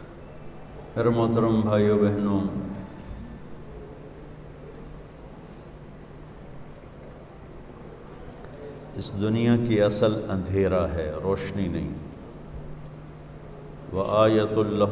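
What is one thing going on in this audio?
An elderly man speaks slowly and with feeling through a microphone, pausing between phrases.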